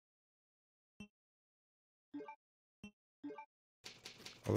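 Short menu beeps sound one after another.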